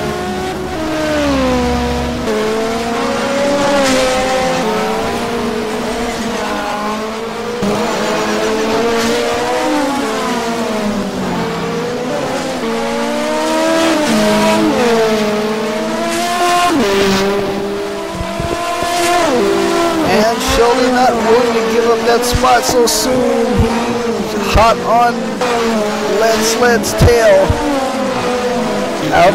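Racing car engines whine and rev loudly as the cars speed past.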